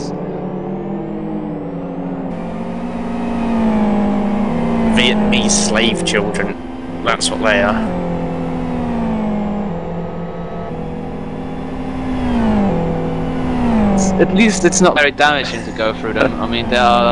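Racing car engines roar and shift gears at high revs.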